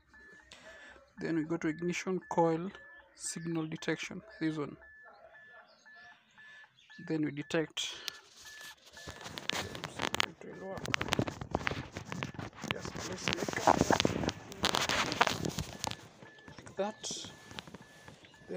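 A handheld electronic device beeps repeatedly in short, even pulses.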